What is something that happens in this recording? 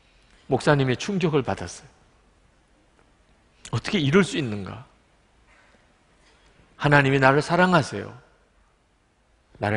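A middle-aged man speaks with feeling into a microphone, in short phrases with pauses.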